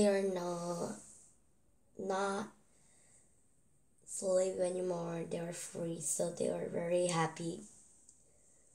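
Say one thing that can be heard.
A young girl reads aloud close to a microphone, with pauses.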